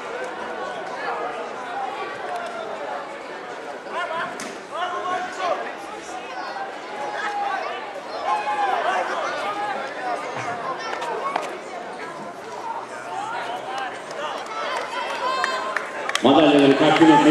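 A crowd of men and women chatter outdoors at a distance.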